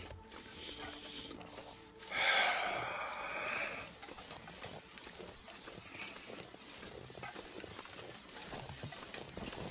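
Footsteps crunch through deep snow at a steady pace.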